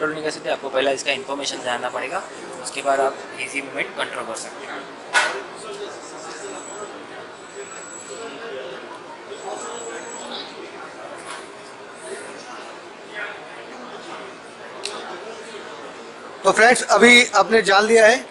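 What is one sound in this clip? A crowd murmurs in the background of a large hall.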